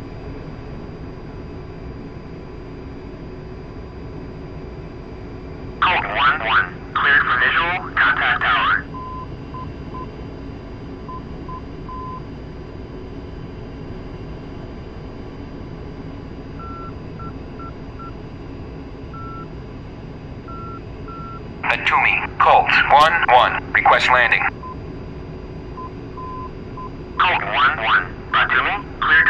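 A jet engine drones steadily.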